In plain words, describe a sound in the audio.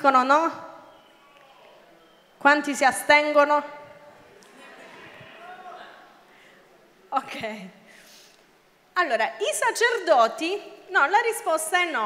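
A young woman speaks with animation into a microphone, heard through loudspeakers in a large echoing hall.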